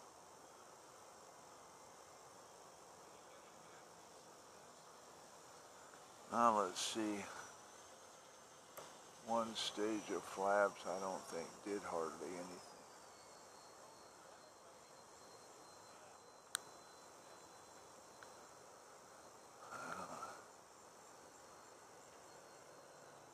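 A small electric motor whines faintly and steadily, dropping a little in pitch partway through.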